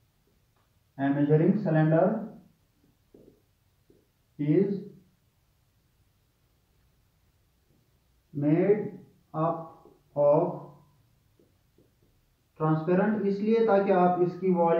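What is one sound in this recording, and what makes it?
A young man speaks calmly and clearly, close by, in short phrases with pauses.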